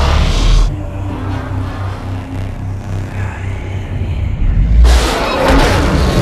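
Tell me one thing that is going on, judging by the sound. Electric energy crackles and surges loudly.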